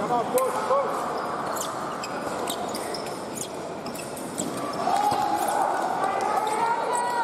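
Shoes squeak and tap on the fencing strip.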